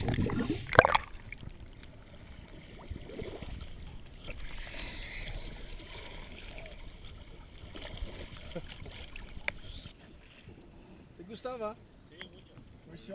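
Choppy sea water splashes at the surface.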